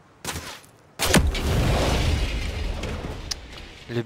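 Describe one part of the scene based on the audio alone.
An explosion booms close by and rumbles away.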